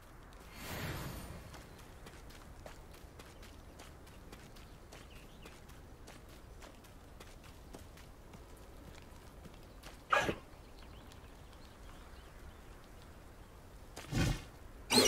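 Hooves clop steadily on a dirt path.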